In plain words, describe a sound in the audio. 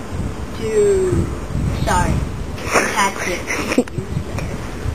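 A boy talks and laughs excitedly close by.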